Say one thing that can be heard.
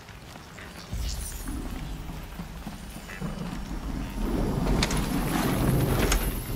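A machine creature hums and growls nearby.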